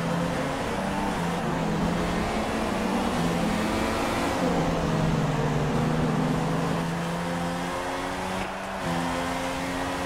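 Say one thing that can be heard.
A racing car engine whines at high revs, shifting gears up and down.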